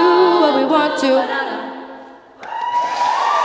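A choir of young women sings together in an echoing hall, the last chord ringing out and fading.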